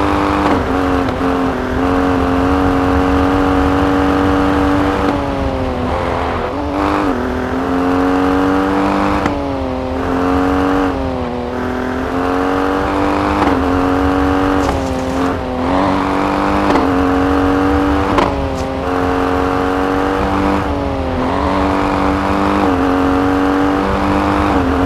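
A rally SUV's engine revs hard and drops in pitch with each gear change.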